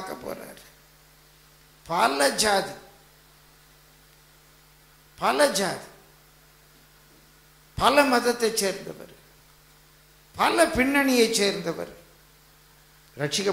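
An elderly man speaks in short, fervent bursts into a microphone, with pauses between phrases.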